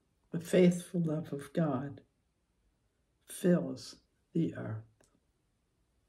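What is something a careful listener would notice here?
An elderly woman speaks calmly and close up, in short phrases with pauses.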